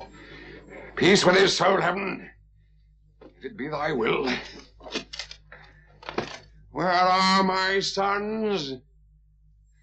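A middle-aged man speaks loudly and with strain, close by.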